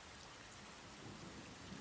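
A young man speaks briefly and quietly into a close microphone.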